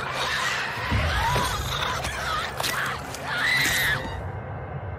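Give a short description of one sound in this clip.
A young woman grunts and cries out while struggling.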